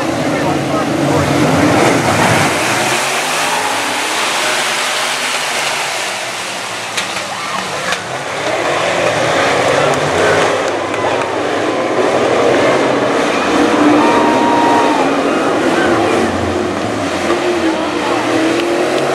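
Race car engines roar loudly.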